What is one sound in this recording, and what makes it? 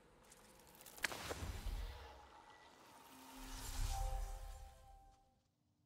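A deep whoosh swells and fades twice.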